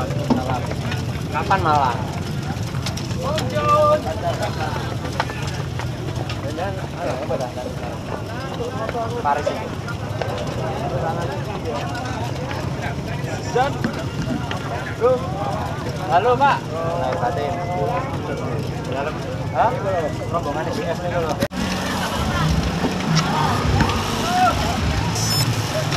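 Many men chat and call out nearby in a crowd.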